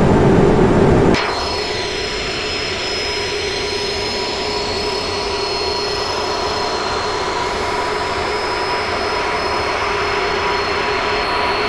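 A jet airliner's engines drone and whine steadily.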